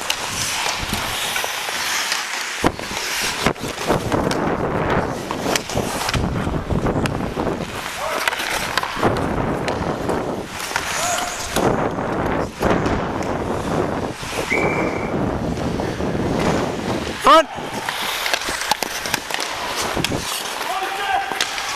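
Ice skates scrape and carve across the ice close by.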